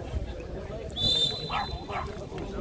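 A referee's whistle blows sharply once.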